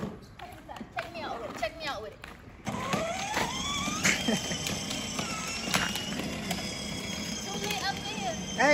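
Small plastic wheels skid and scrape on wet pavement.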